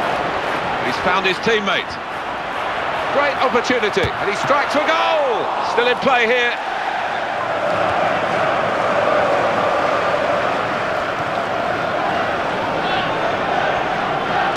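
A large crowd cheers and murmurs steadily in a big stadium.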